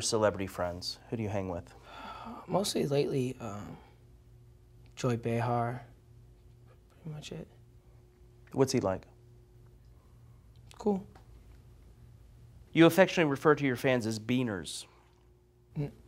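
A man speaks calmly and drily into a close microphone, with long pauses.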